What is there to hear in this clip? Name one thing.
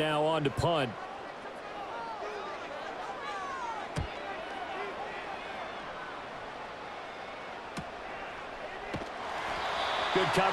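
A large crowd cheers, swelling louder toward the end.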